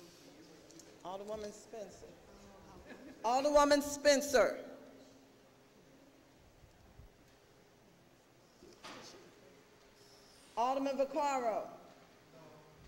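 A woman speaks into a microphone in short phrases, in a large echoing hall.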